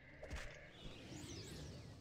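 A skeleton's bones clatter as it collapses.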